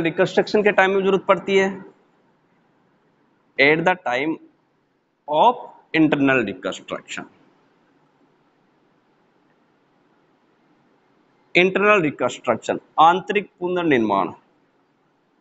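A man speaks calmly and clearly, close to a microphone, in short bursts with pauses.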